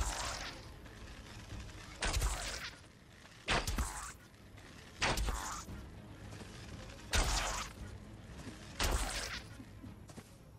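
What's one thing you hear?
A bow twangs as arrows are shot again and again.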